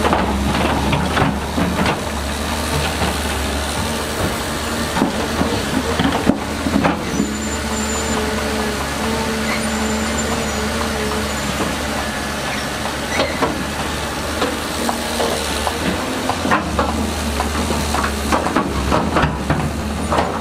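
Mud and rocks scrape and clank against a digger bucket.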